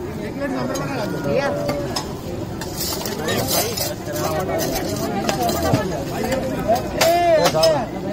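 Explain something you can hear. Steel bowls clink together.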